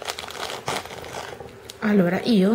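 A string of beads clicks and rattles as it is handled.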